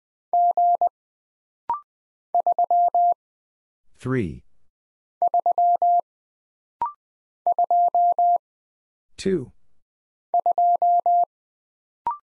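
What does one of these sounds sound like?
A telegraph key taps out quick bursts of high Morse code beeps.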